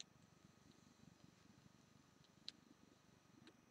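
A man draws a slow breath in through his lips.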